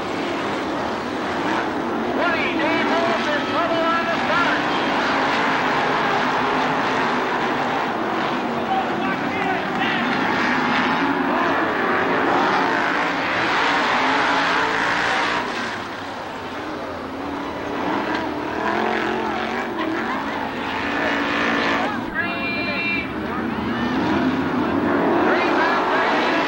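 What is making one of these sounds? Racing car engines roar loudly, revving up and down.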